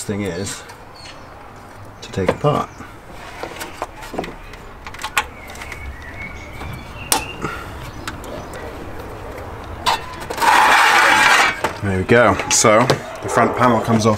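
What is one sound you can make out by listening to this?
Plastic engine parts click and knock under a man's hands.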